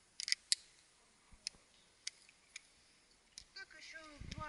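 Metal gear clicks and clinks close by.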